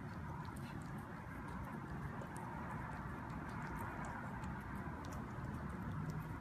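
A cat chews and smacks wetly on soft food up close.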